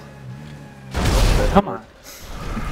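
A car crashes and explodes with a loud boom.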